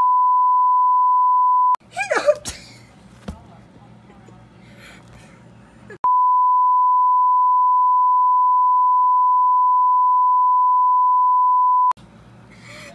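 A steady, high test tone sounds loudly.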